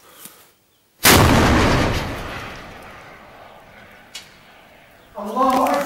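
A heavy gun fires with a loud blast that rolls away in echoes.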